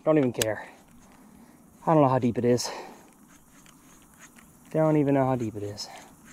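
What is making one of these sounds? A fishing reel clicks softly as it winds.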